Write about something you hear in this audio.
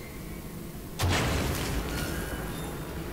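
A heavy metal lever clanks into place.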